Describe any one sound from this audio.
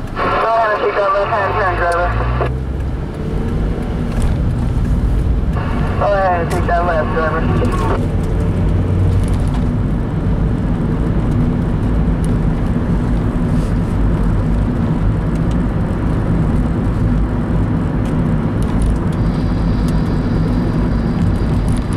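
A car engine hums from inside the car and speeds up as it pulls away.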